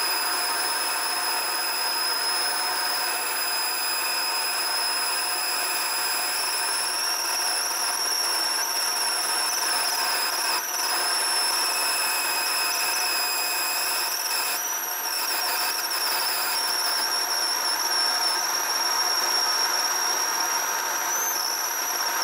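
A cutting tool shrieks with a high, steady whine as it peels metal.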